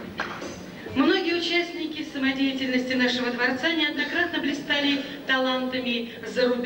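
A woman sings clearly through a microphone.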